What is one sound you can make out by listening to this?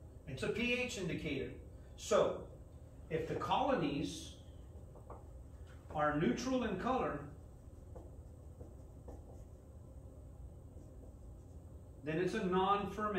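A middle-aged man speaks calmly in short phrases, as if lecturing, close by.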